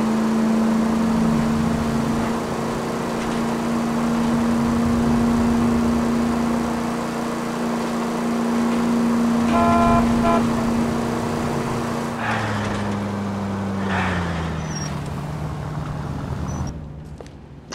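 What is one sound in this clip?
A car engine hums steadily as it drives, then slows down and winds down.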